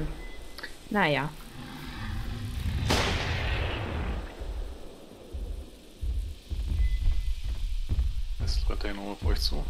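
A large creature roars with a deep, rising and falling growl.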